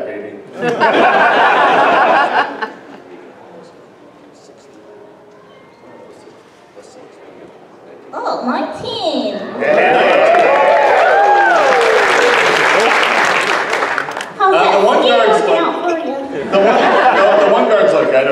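A man speaks over a loudspeaker in a large echoing hall.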